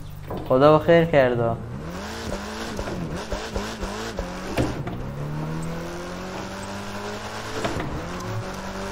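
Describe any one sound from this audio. A car engine revs and roars, rising and falling in pitch as gears change.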